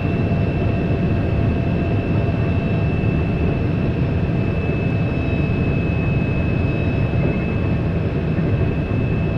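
A train rumbles steadily along the rails at high speed.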